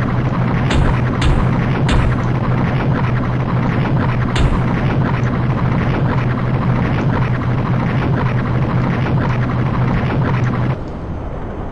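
A ship's engine drones steadily, then drops away.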